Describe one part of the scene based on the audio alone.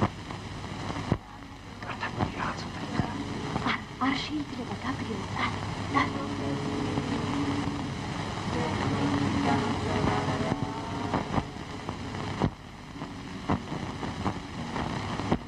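A young woman sobs softly nearby.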